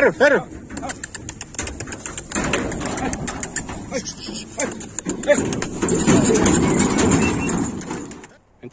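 Metal gate rails rattle and clang as cattle push past.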